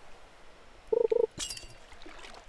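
A bell-like chime rings as a fish bites.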